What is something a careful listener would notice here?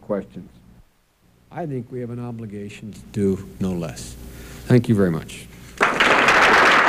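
A man speaks calmly into a microphone over a loudspeaker in a large hall.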